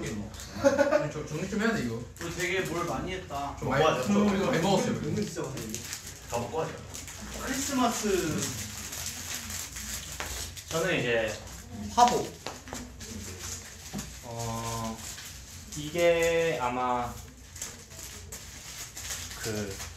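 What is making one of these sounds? Several young men talk and laugh together with animation, close to a microphone.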